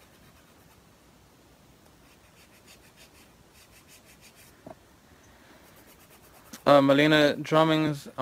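A nail file rasps against a fingernail.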